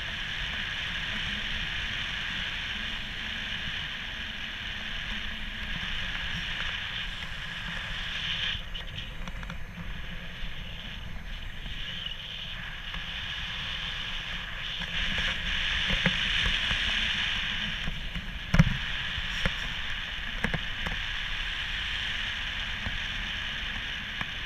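Wind rushes and buffets steadily past a paraglider high in the air.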